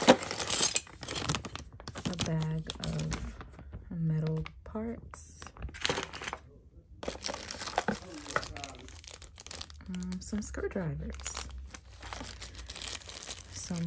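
A plastic bag crinkles and rustles as hands handle it.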